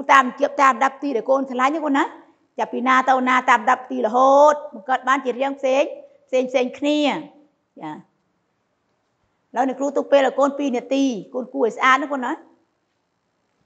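A woman speaks clearly and steadily into a clip-on microphone, close by.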